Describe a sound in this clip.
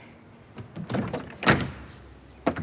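A plastic bin lid slams shut with a loud bang.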